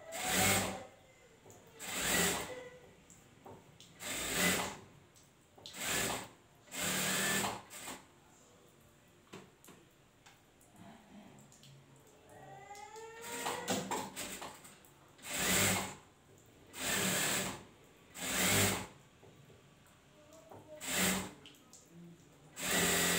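A sewing machine runs in short, fast bursts.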